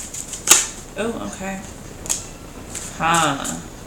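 A card slaps down and slides across a wooden table.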